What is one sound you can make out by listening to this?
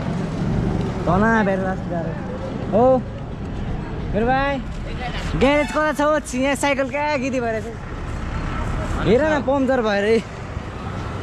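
A young man talks loudly and animatedly, close by.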